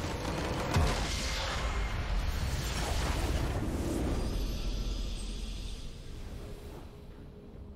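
A triumphant fanfare swells and fades.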